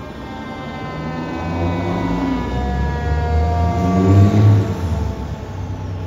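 A fire truck roars loudly as it drives past close by.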